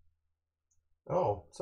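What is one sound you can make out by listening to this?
A man speaks briefly into a close microphone.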